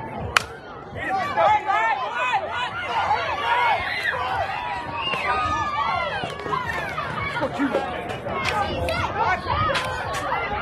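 Young girls shout and cheer outdoors.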